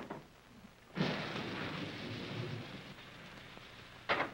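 A fire flares up with a sudden whoosh and crackles.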